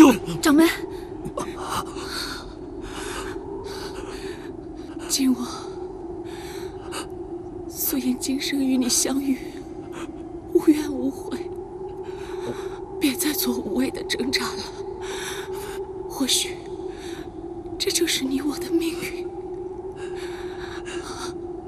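A young woman speaks softly and tearfully, close by.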